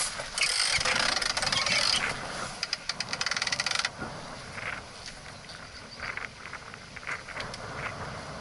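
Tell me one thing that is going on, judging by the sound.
Water splashes and laps against the hull of a small boat.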